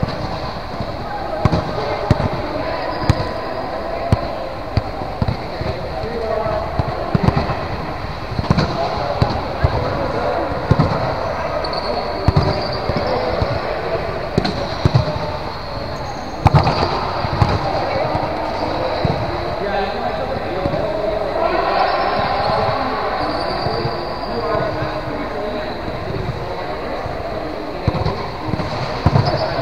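A volleyball thumps off players' arms and hands, echoing in a large hall.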